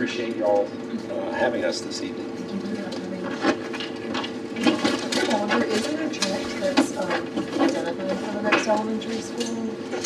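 An elderly man speaks calmly in a room with a slight echo.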